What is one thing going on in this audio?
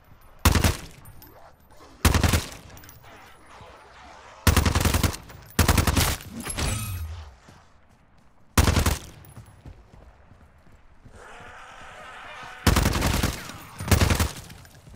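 Loud rifle shots crack one at a time, each with a short echo.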